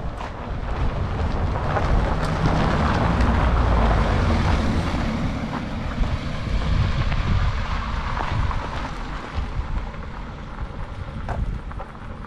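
A car drives slowly along a gravel road.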